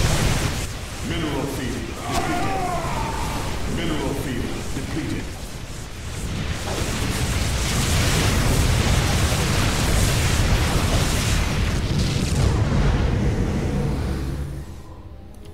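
Laser beams and explosions crackle and boom in a dense battle.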